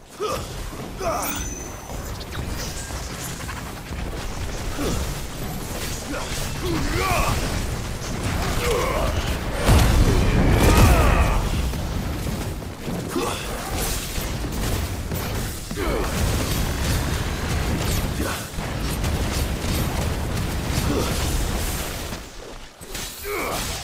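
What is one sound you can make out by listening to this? Metal blades swish and clang in combat.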